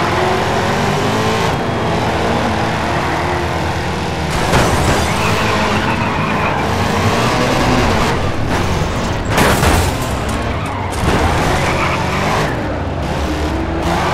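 A race car engine roars and revs throughout.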